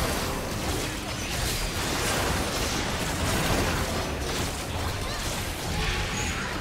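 Magic spells crackle and boom in a fierce battle.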